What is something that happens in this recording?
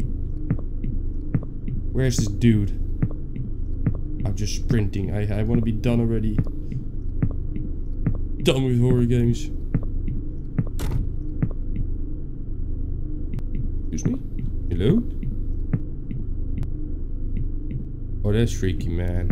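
Footsteps tap steadily on a wooden floor.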